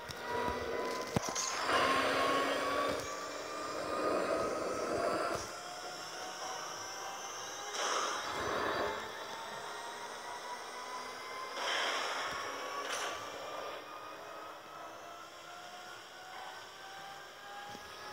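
A racing car engine drones at high speed, its pitch slowly rising.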